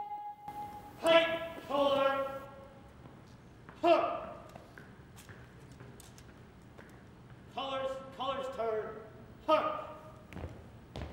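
A man shouts drill commands.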